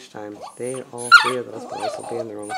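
A puppy whimpers inside a plastic crate.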